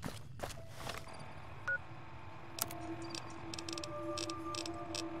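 A device beeps and clicks as buttons are pressed.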